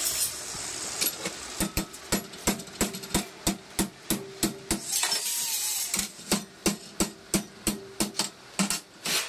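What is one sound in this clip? A metal hammer strikes metal held in a vise in quick, steady blows.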